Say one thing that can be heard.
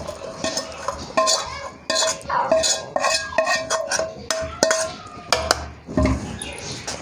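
A metal spatula scrapes and clinks against a pan.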